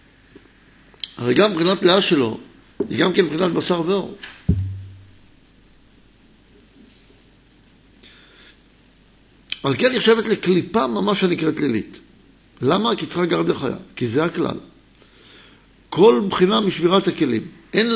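A middle-aged man speaks calmly into a microphone, in bursts with pauses.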